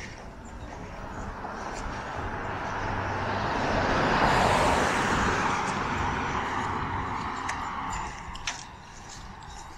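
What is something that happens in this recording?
A car drives past and fades away.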